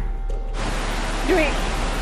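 A young woman speaks anxiously into a phone.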